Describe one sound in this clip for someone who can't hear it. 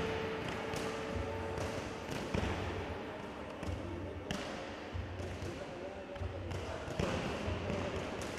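Gloved punches thud against padded mitts in a large echoing hall.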